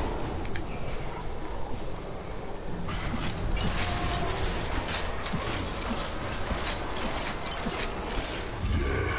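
Game spells crackle and whoosh with bursts of combat noise.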